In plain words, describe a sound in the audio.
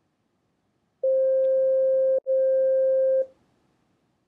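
A phone app plays a steady electronic beep tone.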